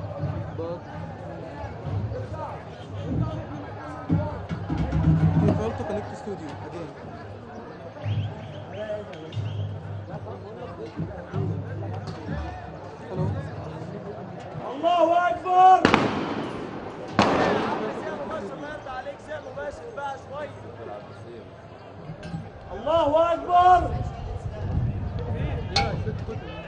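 A crowd shouts and chants in a street, heard from a distance.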